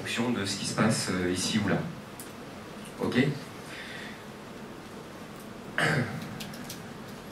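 A young man speaks to an audience in a room with some echo.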